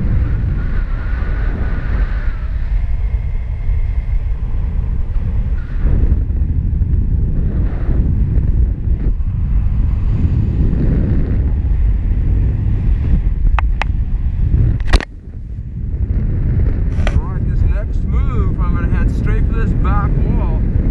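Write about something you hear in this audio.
Wind rushes and buffets loudly against the microphone.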